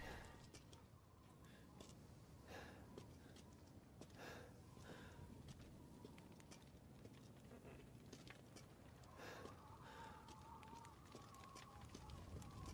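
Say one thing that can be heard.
Footsteps tread slowly on a stone floor.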